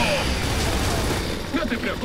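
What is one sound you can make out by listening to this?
An automatic rifle fires a burst of gunfire.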